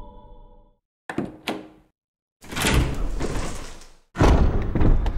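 A heavy wooden door creaks open slowly.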